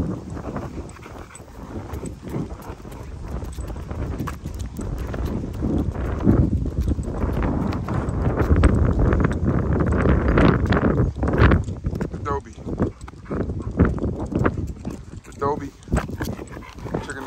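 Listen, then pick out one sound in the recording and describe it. A large dog pants heavily close by.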